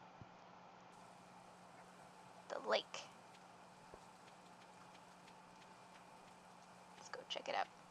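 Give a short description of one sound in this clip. Light rain patters steadily.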